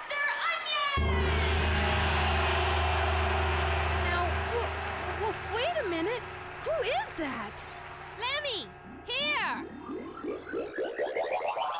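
A band plays lively music with a thumping beat.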